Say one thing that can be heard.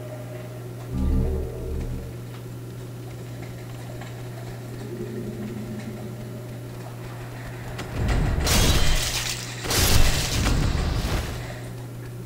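A sword strikes with heavy blows and crashes.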